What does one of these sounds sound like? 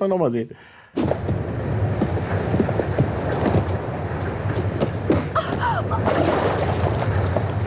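Water rushes and splashes past a moving boat.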